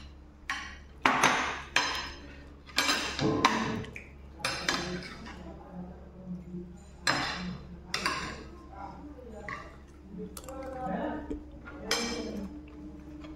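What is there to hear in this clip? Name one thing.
Cutlery clinks and scrapes against a plate.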